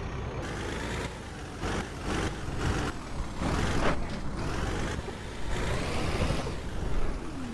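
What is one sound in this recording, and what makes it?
Truck tyres thump over a kerb.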